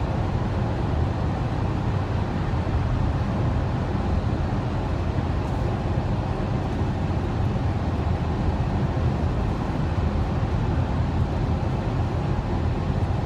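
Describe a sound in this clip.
A car's engine rumbles steadily from inside the cabin while driving.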